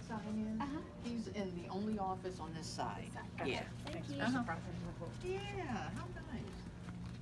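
A young woman talks briefly nearby.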